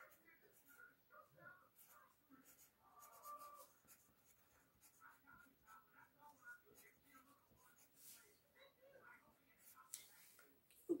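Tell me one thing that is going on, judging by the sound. A coloured pencil scratches quickly back and forth on paper.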